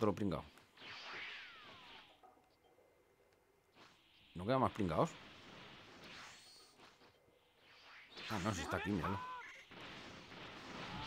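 A rushing whoosh sweeps past.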